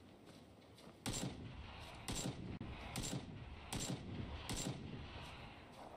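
Gunshots fire in several quick bursts.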